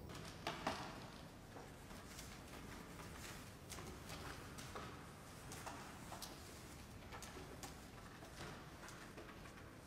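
Footsteps tap softly on a hard floor in an echoing hallway.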